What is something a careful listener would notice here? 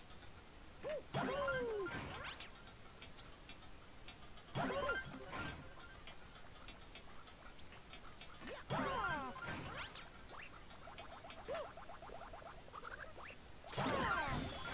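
Game panels flip over with chiming sound effects.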